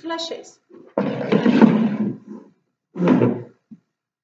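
A chair scrapes across a wooden floor.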